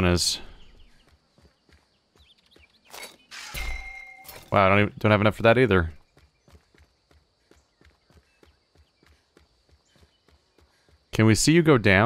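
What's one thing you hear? Footsteps crunch steadily on rough ground.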